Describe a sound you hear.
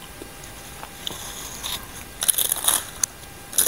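A young woman chews crunchy raw salad close to a microphone.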